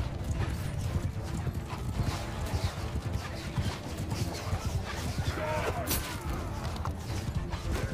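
Horse hooves thud rapidly in a steady gallop.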